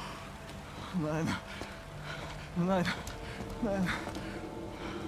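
A middle-aged man cries out in distress.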